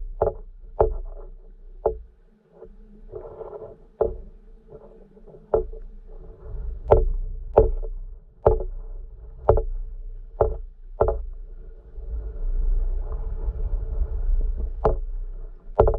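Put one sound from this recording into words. Water rumbles and burbles softly underwater.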